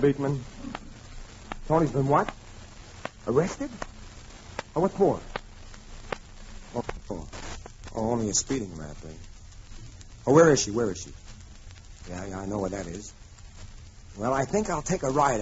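A woman speaks with expression, close by.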